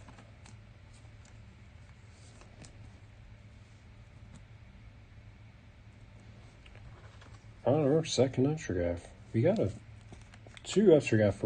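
A plastic card sleeve crinkles softly between fingers.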